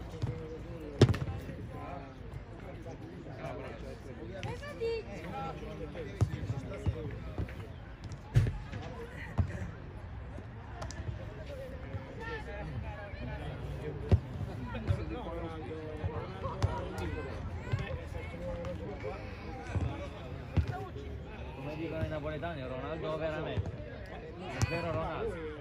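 A football is kicked with dull thumps, outdoors.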